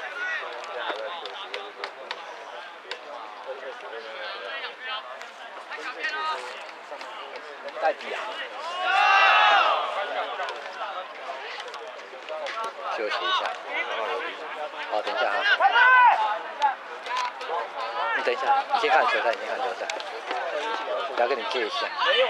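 A crowd of spectators shouts and cheers from the sidelines outdoors.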